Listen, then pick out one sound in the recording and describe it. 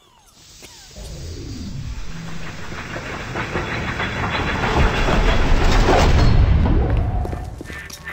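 A heavy metal door rumbles and slides open.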